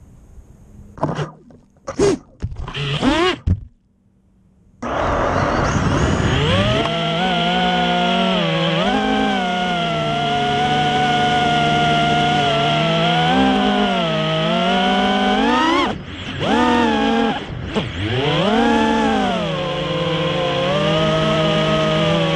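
A small drone's motors whine loudly, rising and falling in pitch as it speeds up and slows down.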